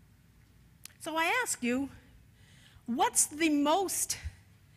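An elderly woman speaks with animation through a microphone.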